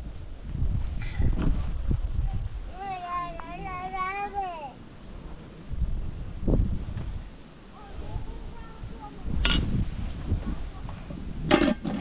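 A metal spoon scrapes and clinks against a metal pot.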